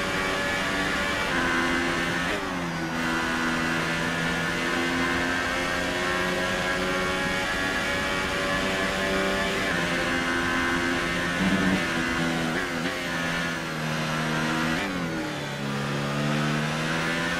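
A racing car engine screams at high revs, dropping in pitch briefly at each gear change.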